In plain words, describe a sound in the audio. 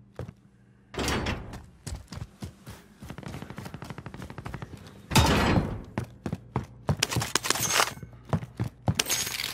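Footsteps thud quickly on hard ground and floors.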